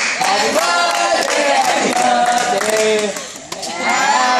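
Hands clap along with the singing.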